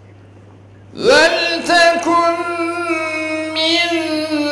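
A man chants in a long, drawn-out melodic voice through a microphone, echoing in a large hall.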